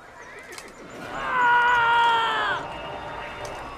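A man screams in agony.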